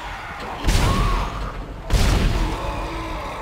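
A plasma gun fires two loud blasts.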